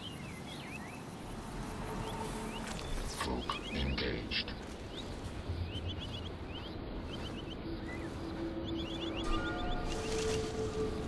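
Leaves and grass rustle as someone pushes through dense plants.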